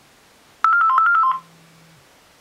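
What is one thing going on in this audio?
A phone plays a short, bright electronic ringtone tune.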